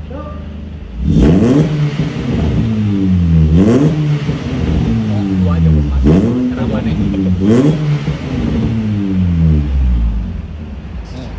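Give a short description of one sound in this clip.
A car engine revs up and down loudly through its exhaust.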